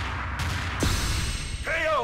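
A heavy thud sounds as a fighter hits the floor.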